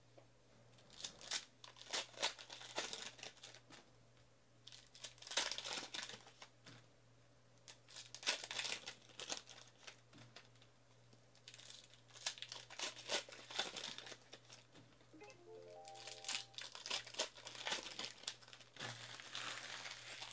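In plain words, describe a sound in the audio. Foil card packs crinkle and tear as hands rip them open.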